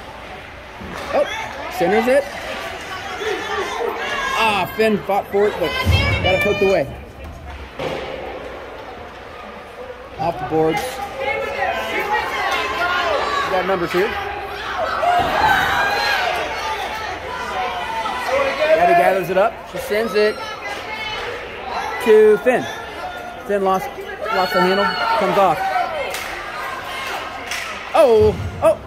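Men and women chat close by in a large echoing hall.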